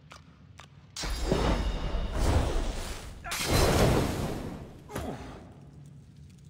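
Fiery magic blasts roar and crackle.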